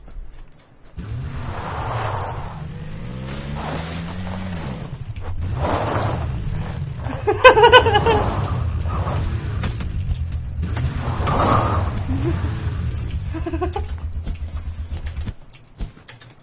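A buggy engine roars and revs.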